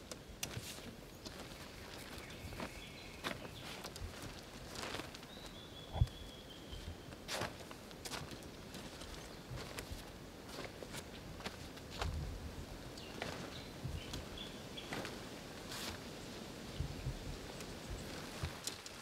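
Tent fabric rustles and flaps.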